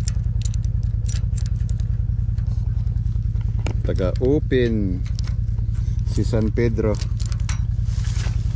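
A metal chain rattles and clinks against a post.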